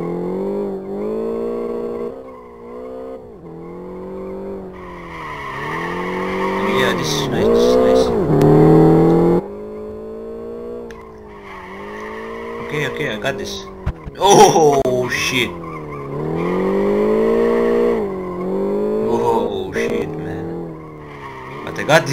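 A car engine revs up and down steadily throughout.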